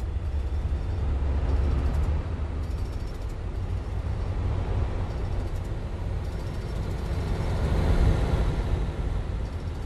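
Passing trucks roar by close at hand.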